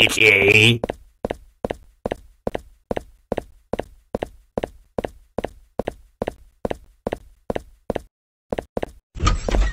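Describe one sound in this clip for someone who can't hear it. Footsteps tread at a steady pace.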